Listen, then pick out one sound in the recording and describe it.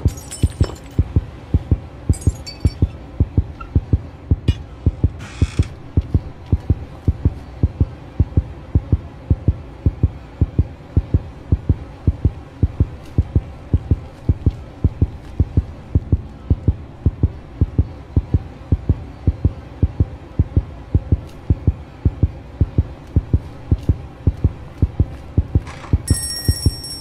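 Footsteps thud in a steady rhythm on a hard floor.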